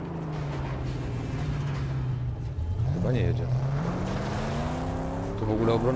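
Tyres skid and scrape over loose sand.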